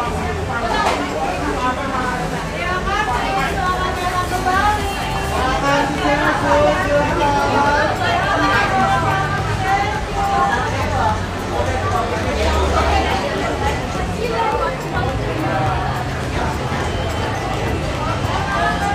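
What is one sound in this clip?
A young woman argues loudly and angrily up close.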